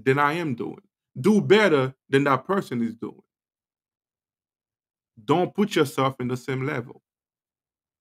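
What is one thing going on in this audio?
A man speaks calmly and closely into a microphone, pausing between phrases.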